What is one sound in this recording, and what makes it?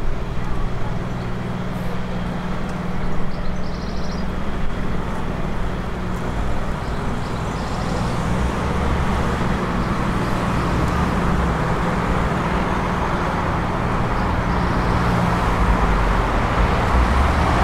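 Traffic hums steadily along a street nearby.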